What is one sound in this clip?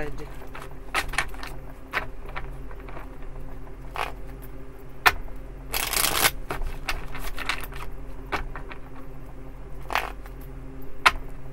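Playing cards are shuffled and riffled by hand, with soft flicks and taps.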